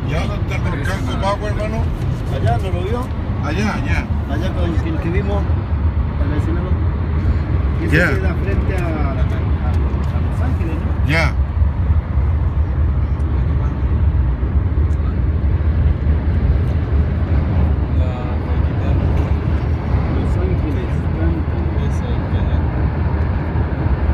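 A car drives at speed on an asphalt highway, its low rumble heard from inside the cabin.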